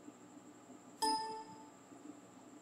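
A short computer chime sounds.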